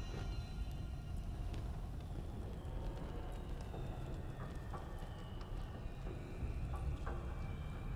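Soft menu clicks sound from a game as items are selected.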